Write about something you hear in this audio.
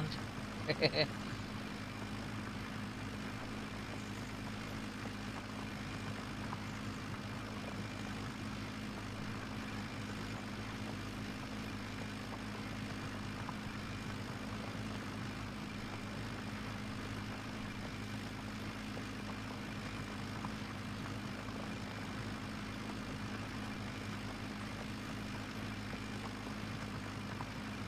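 A tractor engine drones steadily at a low pitch.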